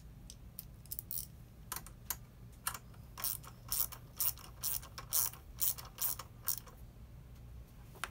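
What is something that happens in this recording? A ratchet wrench clicks in quick bursts.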